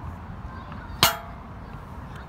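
A skateboard deck clacks sharply against hard ground.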